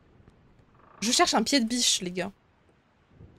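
A young woman speaks into a close microphone.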